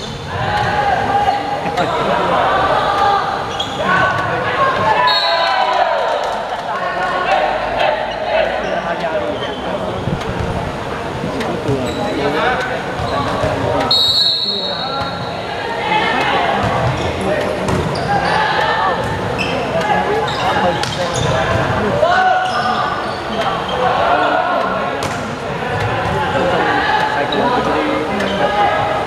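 Players shout and call out to each other throughout, in a large echoing hall.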